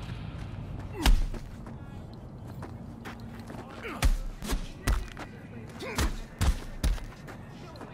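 Heavy punches land with dull thuds.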